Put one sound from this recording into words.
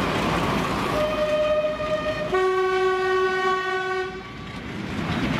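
A diesel locomotive sounds a two-tone horn.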